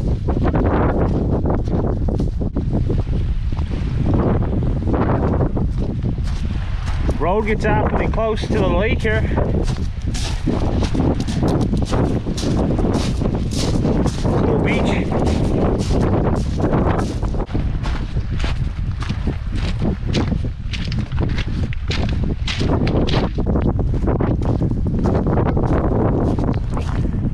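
Tyres crunch and rattle over gravel and stones.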